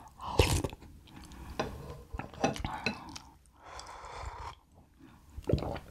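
Glass clinks against glass.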